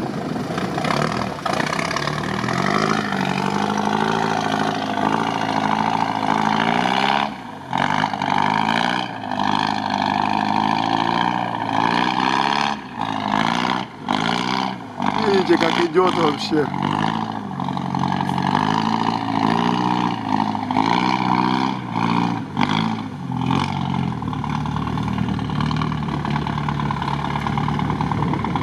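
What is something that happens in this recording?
A truck engine roars and revs loudly, rising and falling in pitch.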